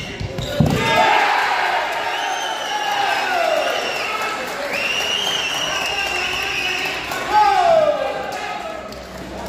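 Spectators shout and cheer loudly in an echoing hall.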